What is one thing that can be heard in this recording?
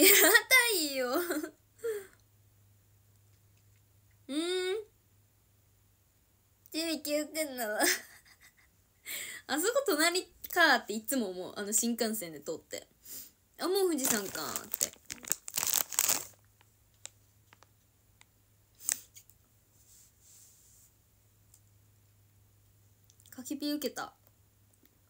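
A young woman talks chattily, close to the microphone.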